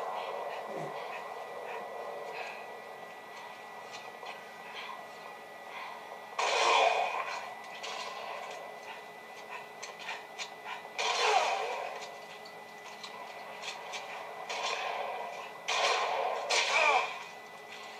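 Gunfire from a video game rattles in bursts.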